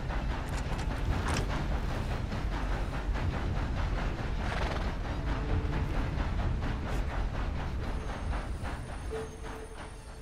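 Horse hooves thud at a steady walk on soft ground.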